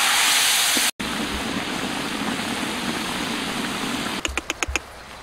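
A thick stew bubbles and simmers.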